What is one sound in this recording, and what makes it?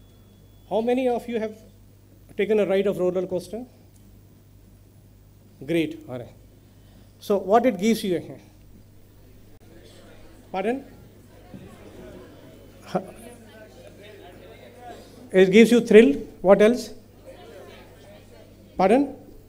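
A middle-aged man speaks into a microphone in bursts, heard through a loudspeaker in a large echoing hall.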